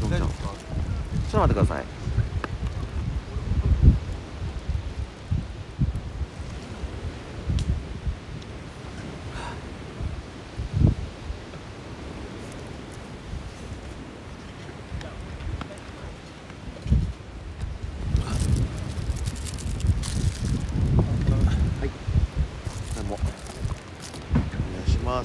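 A plastic water bottle crinkles in a hand.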